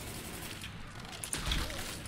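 A rifle fires shots in bursts.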